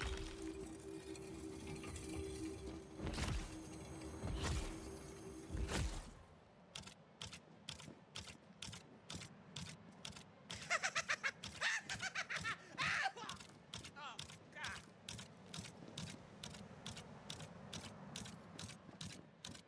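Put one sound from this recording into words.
An automatic gun fires rapid shots.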